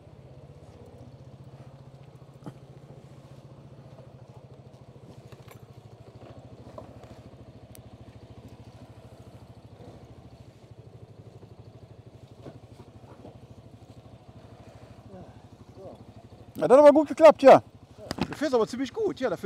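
A scooter engine idles with a steady low hum.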